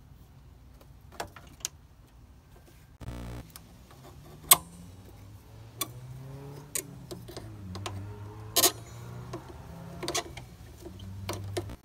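Metal locking pliers click and clink against engine parts.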